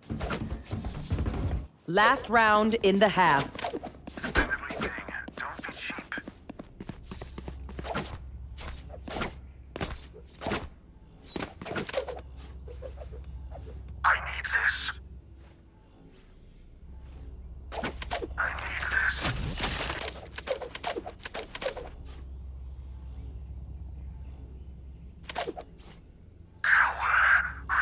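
Quick footsteps tap across a hard floor.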